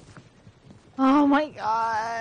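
A horse whinnies nearby.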